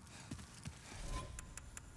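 Soft menu clicks tick.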